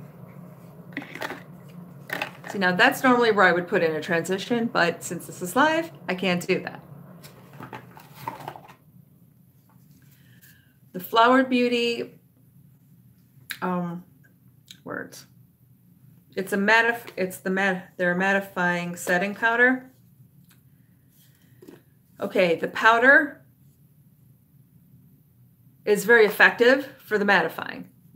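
A woman talks calmly and closely into a microphone, with pauses.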